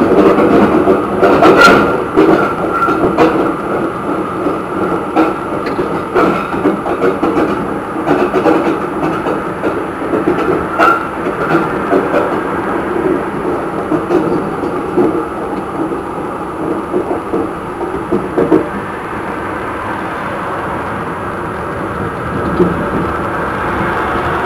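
Wheels click over rail joints.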